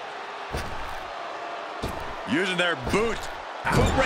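A kick lands with a sharp smack.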